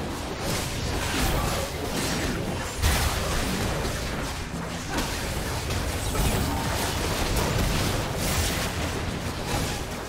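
Magic blasts and clashing weapon strikes crackle and boom in a fast battle.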